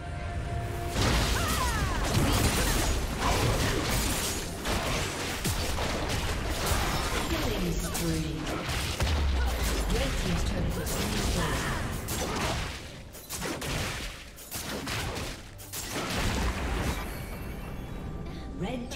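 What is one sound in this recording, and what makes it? Video game spells and weapon hits crackle and boom in a busy battle.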